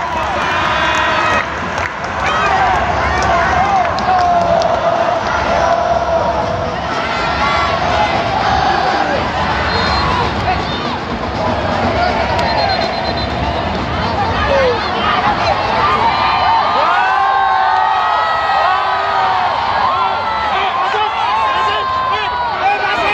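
A large stadium crowd roars and chants loudly all around.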